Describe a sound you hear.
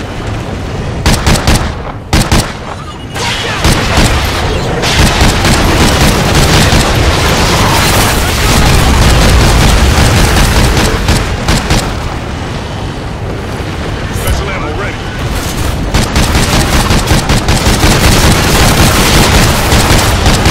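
A rifle fires repeated sharp shots.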